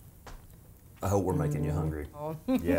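A man speaks with amusement close by.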